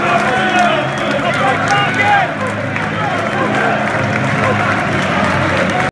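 A crowd of fans sings and chants loudly nearby in a large open stadium.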